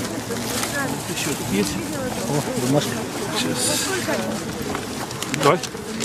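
A crowd of men and women talk over one another close by, outdoors.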